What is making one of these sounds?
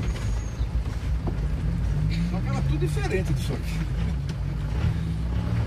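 A motorhome's engine rumbles low while driving, heard from inside the cab.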